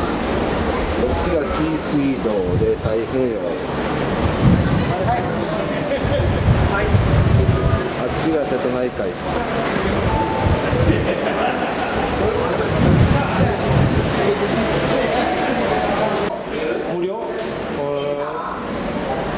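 Several adults talk in a crowd, close by and further away, in a large hall that echoes.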